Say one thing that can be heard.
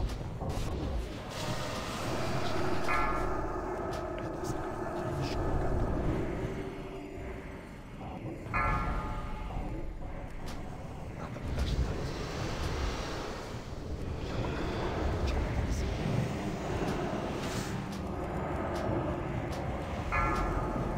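Fantasy battle sound effects crackle and burst with magic blasts and clashing weapons.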